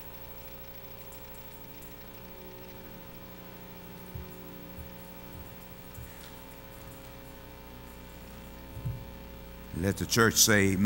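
A keyboard plays soft, sustained chords.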